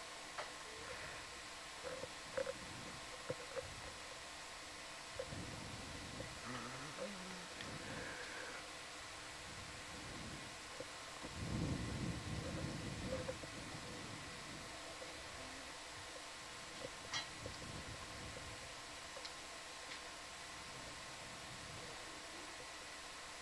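Machinery hums steadily underwater.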